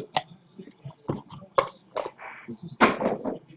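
A small cardboard box is handled and set down with soft knocks.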